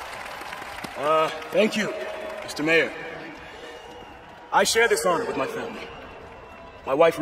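A man speaks clearly and formally through a microphone.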